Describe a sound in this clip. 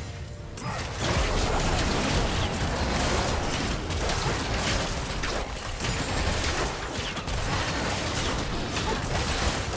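Magic blasts and impacts crackle and boom in a hectic video game battle.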